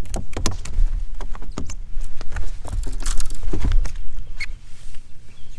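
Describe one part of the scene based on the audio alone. Footsteps thump and knock on a boat deck.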